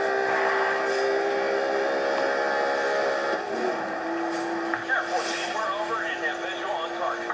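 A racing car engine roars at high speed through a loudspeaker.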